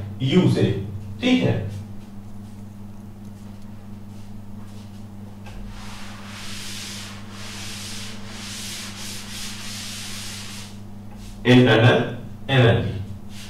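A man speaks close by in a calm, lecturing voice.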